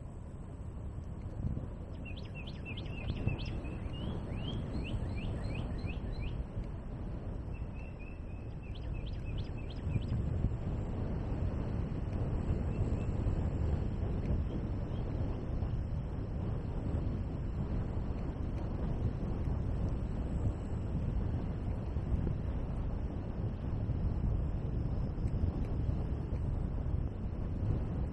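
Tyres roll steadily along a paved path.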